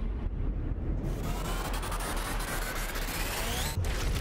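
A bullet whooshes through the air.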